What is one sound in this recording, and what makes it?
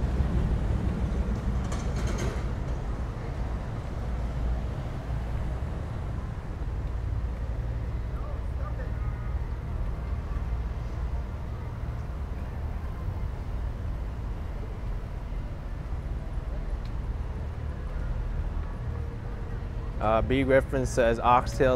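City traffic rumbles steadily nearby.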